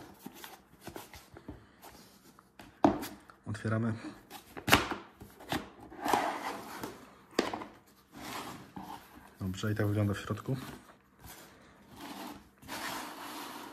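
A plastic case rustles and scrapes as hands handle it.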